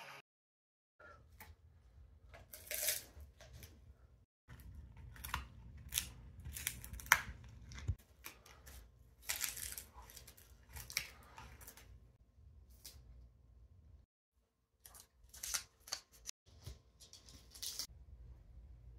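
A dog gnaws and crunches on a chew bone up close.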